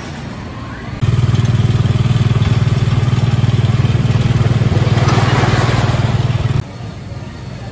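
A wooden roller coaster train rumbles loudly along its track.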